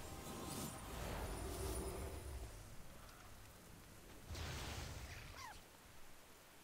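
Crackling lightning magic bursts loudly.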